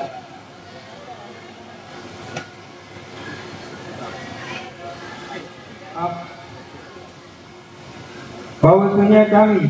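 A crowd murmurs and chatters in the background.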